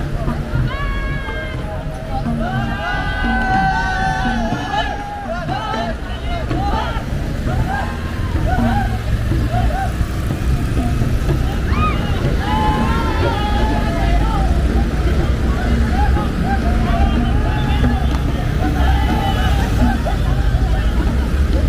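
A crowd of men and women sings and chants loudly outdoors.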